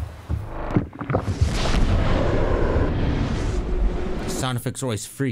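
A deep rushing whoosh swells up.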